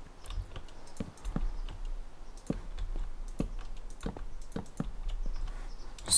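Blocks knock softly as they are placed one after another.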